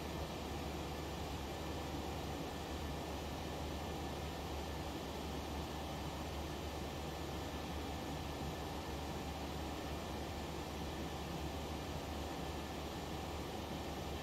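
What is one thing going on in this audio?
Jet engines drone steadily in a cockpit at cruise.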